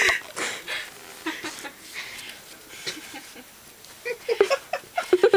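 A dog sniffs and snuffles close by.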